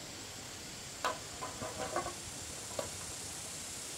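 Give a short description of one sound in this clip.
Bamboo poles knock and clatter together as they are lifted.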